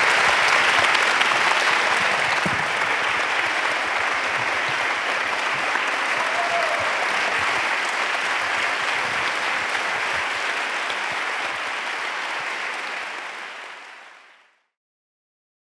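An audience applauds in a large echoing hall, then fades out.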